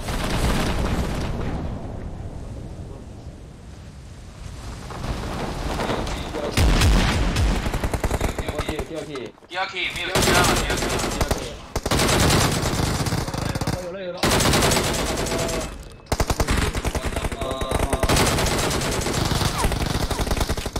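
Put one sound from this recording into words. A young man talks into a close microphone with animation.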